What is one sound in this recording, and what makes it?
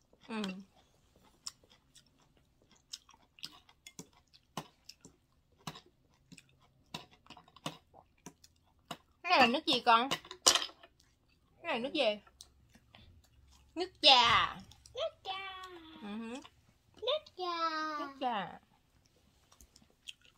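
A young woman chews food and smacks her lips close by.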